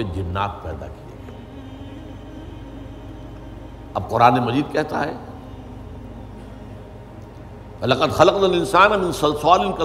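An elderly man speaks slowly and earnestly into a microphone, with long pauses.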